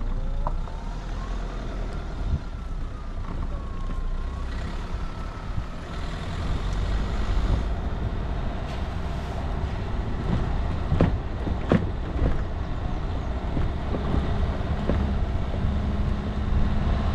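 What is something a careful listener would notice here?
Tyres crunch over a rough dirt track.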